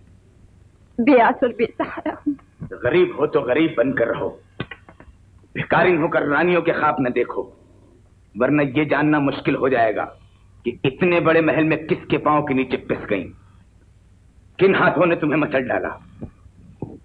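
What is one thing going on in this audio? A young woman speaks in a trembling, pleading voice.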